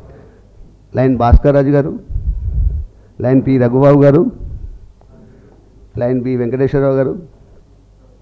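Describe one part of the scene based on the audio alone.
A man speaks slowly and formally into a microphone.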